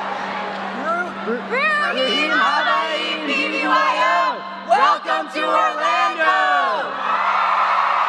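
A group of young men and women sing together loudly into microphones in a large hall.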